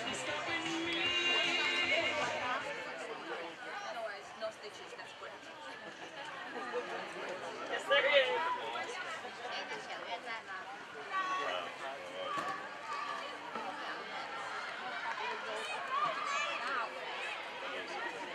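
Young women shout and call to each other outdoors.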